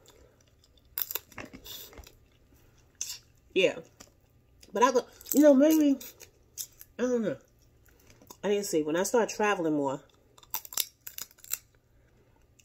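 A woman crunches food between her teeth.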